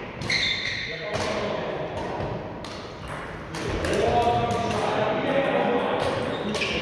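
Shuttlecocks pop off badminton rackets in a large echoing hall.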